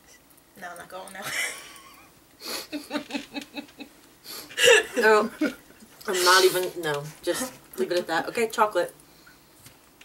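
A young woman talks animatedly close by.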